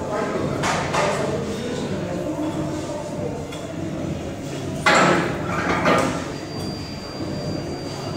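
Men's voices chatter in the background of an echoing room.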